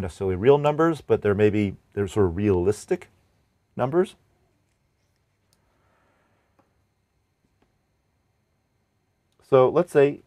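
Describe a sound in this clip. A middle-aged man speaks calmly and closely into a microphone, pausing between phrases.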